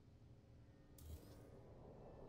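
A building piece snaps into place with a short electronic click.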